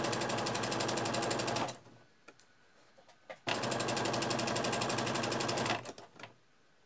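A sewing machine whirs in fast bursts, stitching rapidly.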